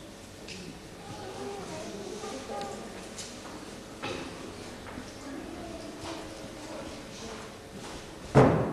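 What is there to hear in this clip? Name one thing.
A man speaks on a stage in an echoing hall.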